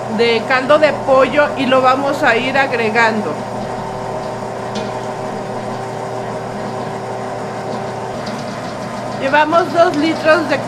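A stand mixer whirs steadily as its hook kneads dough.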